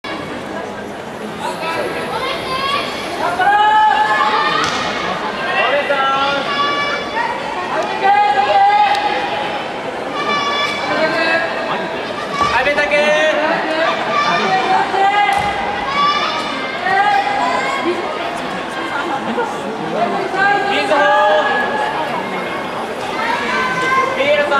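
A crowd of young people shouts and cheers in a large echoing hall.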